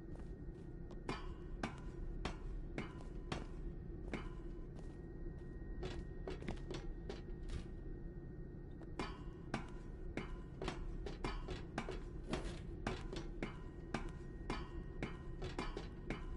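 Footsteps clank on metal rungs and walkways.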